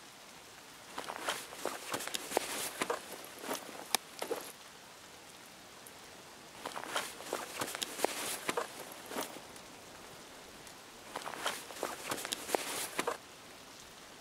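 Gear rustles and clicks in short bursts as items are moved about.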